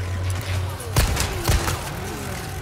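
A pistol fires two loud shots that echo.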